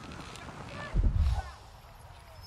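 A large winged creature lands with a heavy thump.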